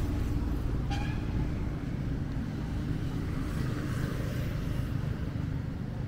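A motorcycle engine hums as it rides along the road.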